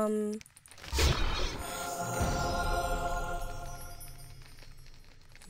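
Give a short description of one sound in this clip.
A bright chime rings out and slowly fades.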